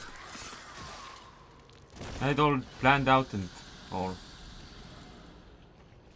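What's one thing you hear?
Magic energy crackles and whooshes.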